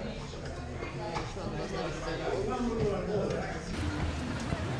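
People chatter in a busy room.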